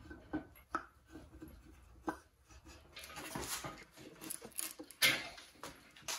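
A wooden board knocks and scrapes against metal.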